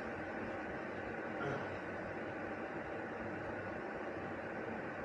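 Water rumbles and hisses steadily as it heats in a kettle.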